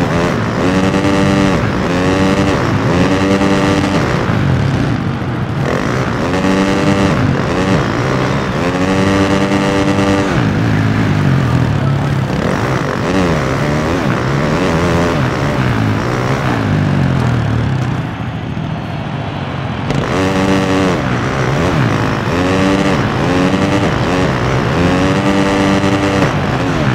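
A motorcycle engine revs hard, its whine rising and falling again and again with each gear change.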